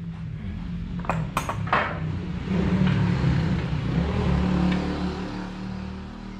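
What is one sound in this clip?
Metal parts clink and clatter as an engine cover is handled.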